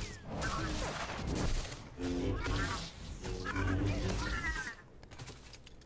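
Lightsabers hum and clash in combat.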